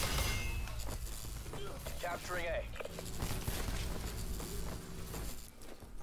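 An electric weapon crackles and buzzes in a video game.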